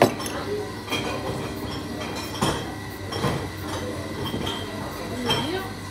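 Metal jugs clink against glasses.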